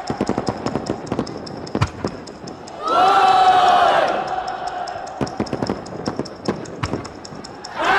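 Fireworks pop and crackle in the distance.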